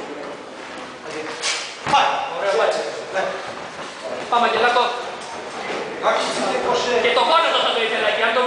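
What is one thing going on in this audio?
A man calls out instructions nearby in an echoing room.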